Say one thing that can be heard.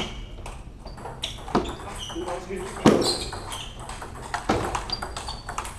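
A ping pong ball clicks sharply off paddles and the table.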